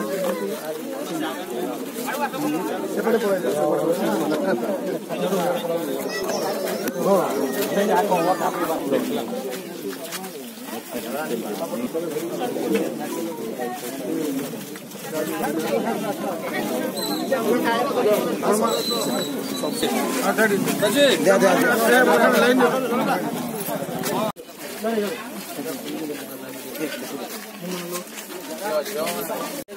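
A crowd of men and women chatters close by outdoors.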